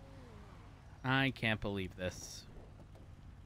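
A man speaks loudly and briefly through a microphone.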